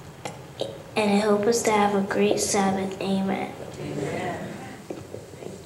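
A woman speaks warmly into a microphone, heard through loudspeakers.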